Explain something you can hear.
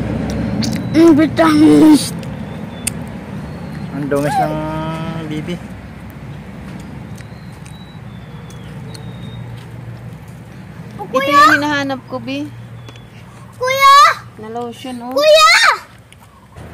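A little girl talks and babbles excitedly close by.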